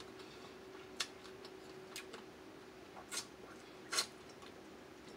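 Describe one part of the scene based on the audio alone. A young woman sucks and smacks her lips while eating.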